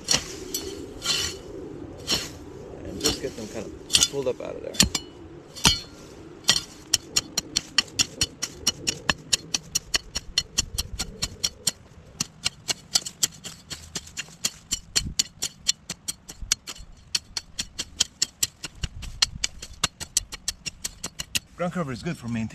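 A hoe chops rhythmically into soil and weeds.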